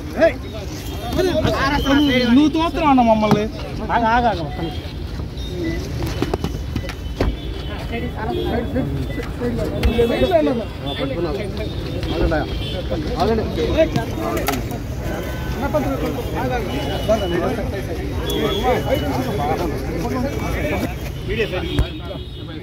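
A crowd of men talk and shout over one another close by.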